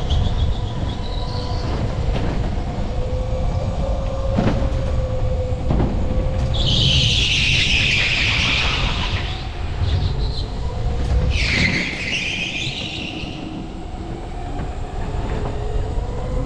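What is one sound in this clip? A go-kart engine whines and hums steadily up close.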